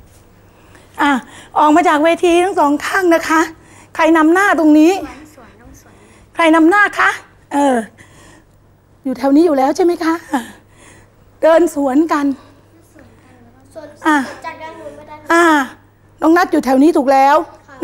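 A woman speaks calmly, giving instructions in short phrases.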